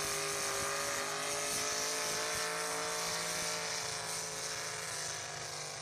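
Tyres spin and churn through loose dirt.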